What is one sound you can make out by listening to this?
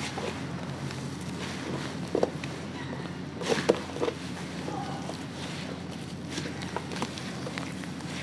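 Hands squish and squelch through wet, gritty mud.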